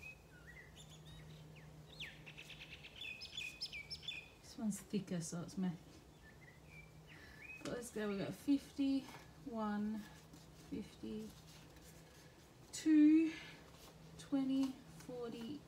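Paper banknotes rustle and crinkle as they are handled and laid down.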